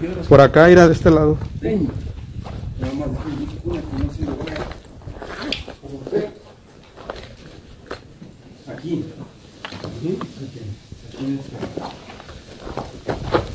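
Leaves and branches rustle close by.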